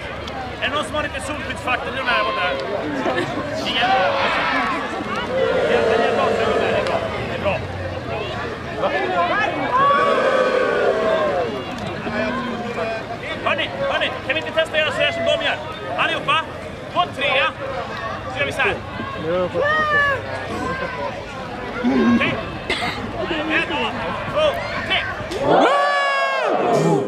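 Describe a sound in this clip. A man shouts loudly to a crowd outdoors.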